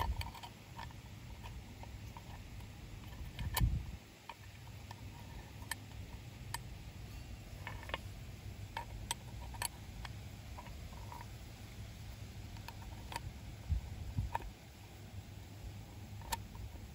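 Small metal parts click and clink as they are fitted together by hand.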